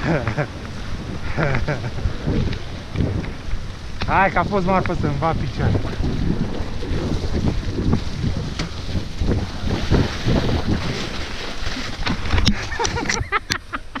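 Wind rushes past the rider downhill.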